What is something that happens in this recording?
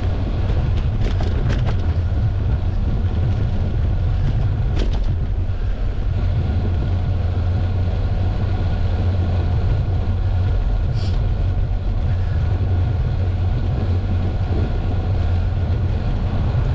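Tyres roll steadily over rough asphalt, with a low rumbling drone.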